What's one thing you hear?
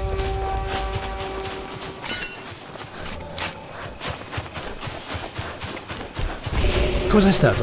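Footsteps crunch softly on sandy ground.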